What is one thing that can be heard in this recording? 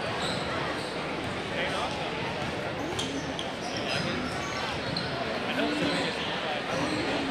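Basketballs bounce on a hardwood floor.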